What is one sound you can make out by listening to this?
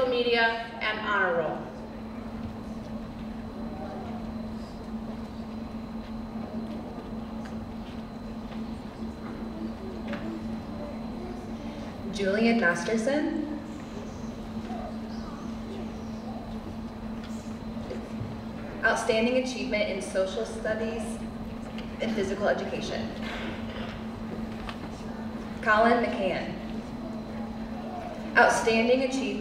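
A man announces calmly through a loudspeaker in a large echoing hall.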